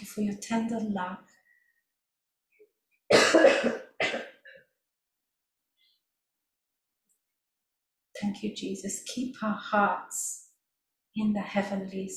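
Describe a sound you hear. A woman speaks calmly into a microphone, in bursts with pauses.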